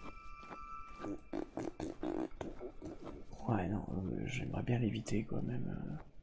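Footsteps crunch softly through snow.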